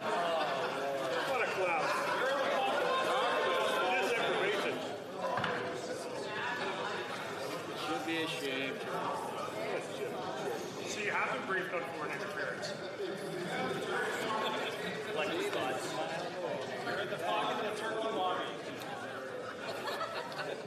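A crowd of men and women shout and jeer in a large echoing chamber.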